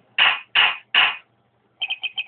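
A wooden gavel bangs three times.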